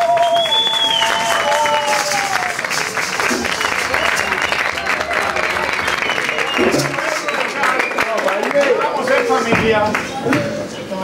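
Hand drums play a lively rhythm.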